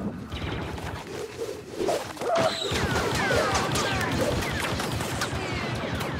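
Laser blasters fire in rapid, sharp zaps.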